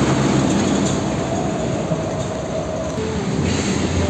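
A diesel tractor-trailer drives away.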